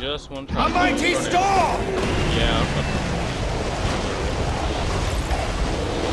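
Blows and magical bursts clash in a fight.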